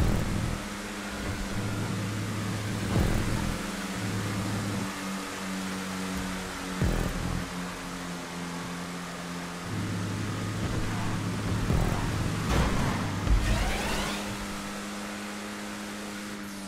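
A race car engine roars steadily, its pitch shifting as it changes gear.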